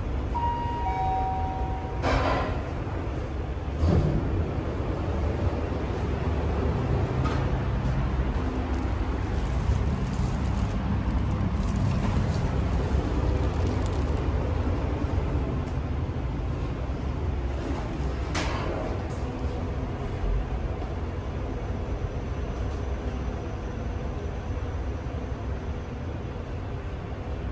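An elevator hums and rumbles steadily as it moves.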